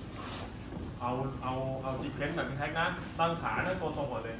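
A young man speaks calmly, giving instructions.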